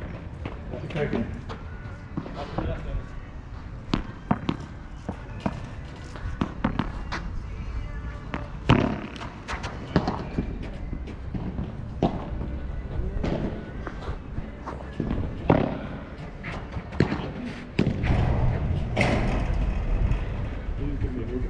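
A ball bounces on the court.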